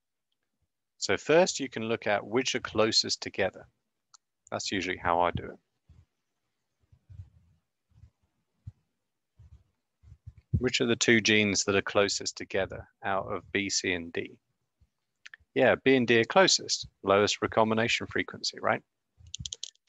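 A young man talks calmly into a nearby microphone, with pauses.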